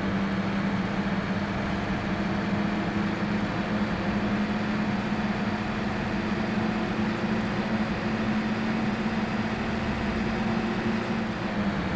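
A bus engine hums steadily while the bus drives along.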